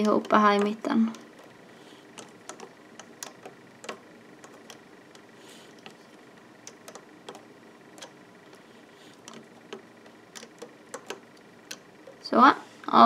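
Small plastic clicks and taps come as a metal hook pulls rubber bands on a loom.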